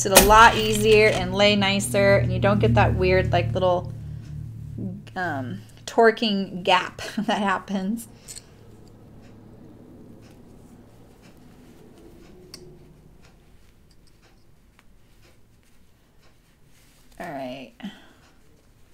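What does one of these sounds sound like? An older woman talks calmly and warmly through a microphone.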